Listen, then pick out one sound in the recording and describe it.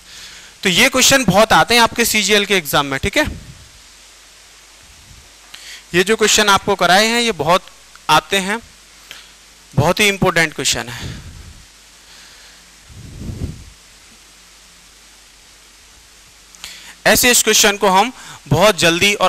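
A man speaks with animation close to a headset microphone, lecturing in bursts.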